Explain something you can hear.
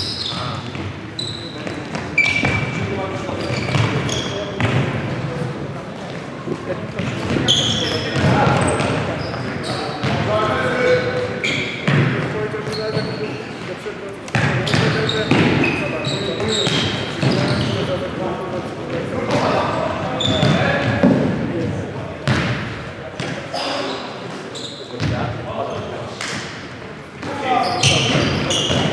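Young men shout to each other across an echoing court.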